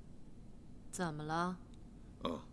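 A middle-aged woman answers with a short, calm question, close by.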